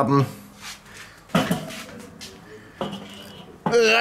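A metal grill grate clanks into place.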